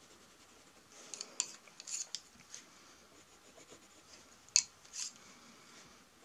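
Pencils clatter and click against each other.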